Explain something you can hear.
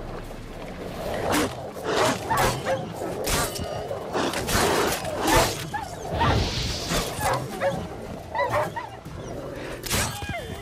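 Wolves snarl and growl close by.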